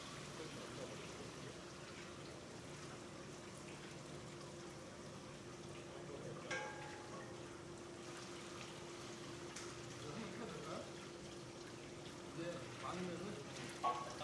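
Liquid trickles steadily into a metal pot.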